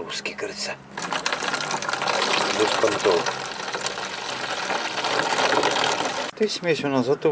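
Liquid pours and splashes into a plastic bottle.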